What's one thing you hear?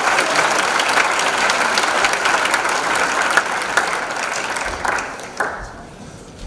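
An audience applauds loudly in a large hall, then the applause dies away.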